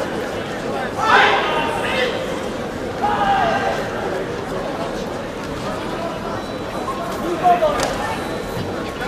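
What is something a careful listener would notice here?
Young women shout sharply together in a large echoing hall.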